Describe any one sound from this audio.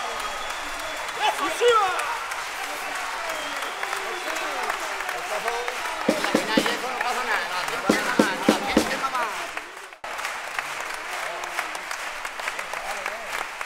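Men and women on stage shout and sing loudly in a large hall.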